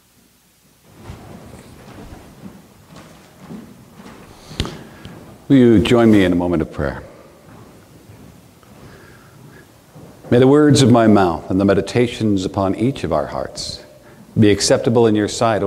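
A man speaks calmly in an echoing room.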